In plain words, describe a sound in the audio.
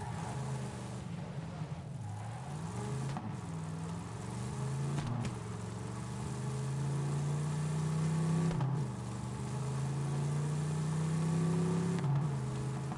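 A buggy's engine drones and revs up and down as it drives.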